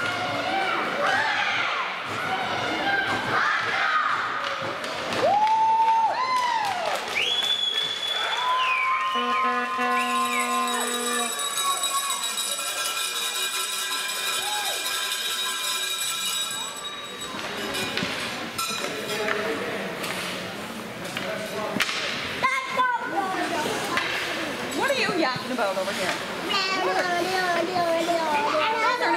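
Young children shout and cheer together in a large echoing rink.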